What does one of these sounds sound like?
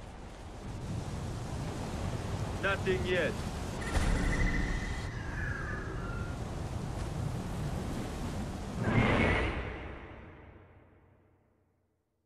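Wind rushes steadily past a soaring eagle, then fades away.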